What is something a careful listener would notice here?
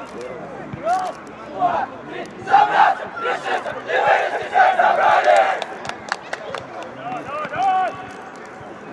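A group of young men shout a chant together in the distance, outdoors.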